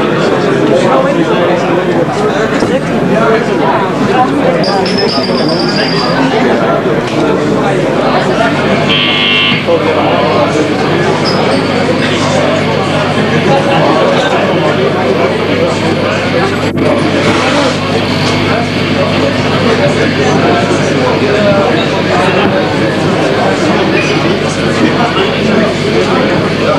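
A rock band plays loud, distorted music live.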